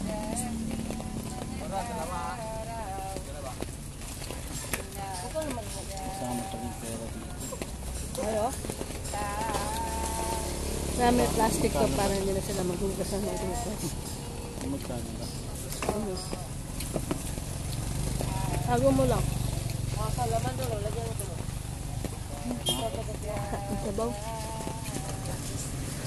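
A young woman talks casually close by.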